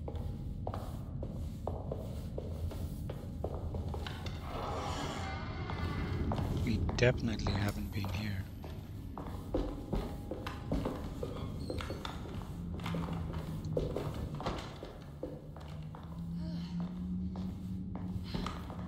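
Footsteps thud on a wooden floor and stairs.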